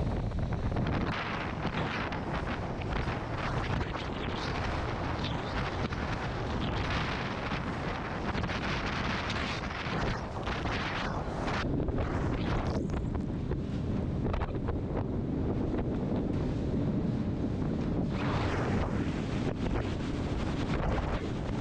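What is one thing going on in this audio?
Strong wind roars and buffets loudly outdoors.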